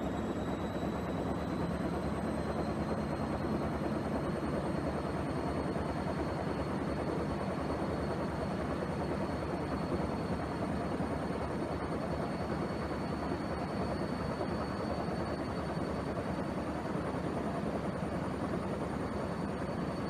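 A washing machine drum turns with a steady low hum.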